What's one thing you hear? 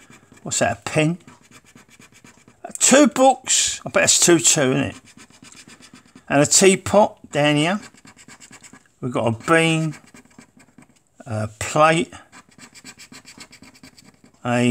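A coin scrapes rapidly across a scratch card.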